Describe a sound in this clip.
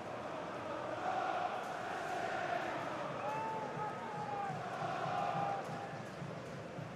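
A crowd's cheering swells and then settles.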